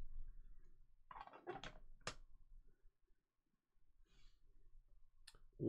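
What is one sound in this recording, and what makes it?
Cards slide and rustle against each other.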